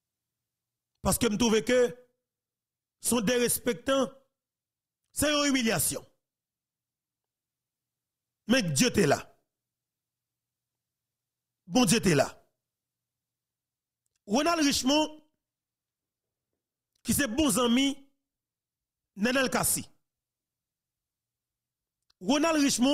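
A man speaks calmly into a close microphone in short bursts with pauses.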